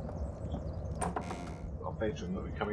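A wooden door clicks and swings open.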